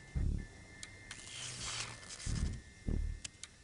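Electricity crackles and buzzes briefly.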